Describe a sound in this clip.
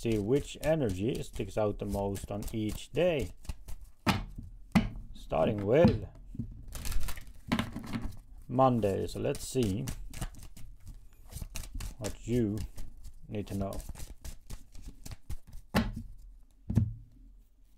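Playing cards riffle and shuffle in a man's hands.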